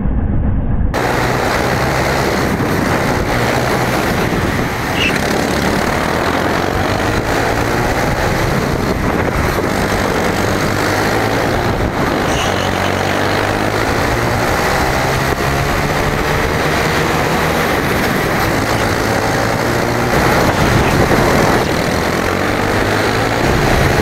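A go-kart engine buzzes loudly up close, revving up and down.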